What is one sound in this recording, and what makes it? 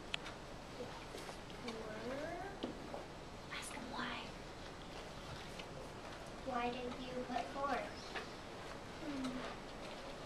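A young boy speaks softly nearby.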